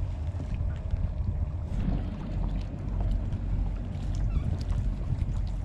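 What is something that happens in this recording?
Small waves lap against a floating kayak.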